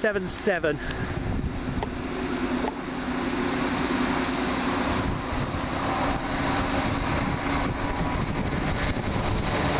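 A diesel multiple-unit train approaches along the track.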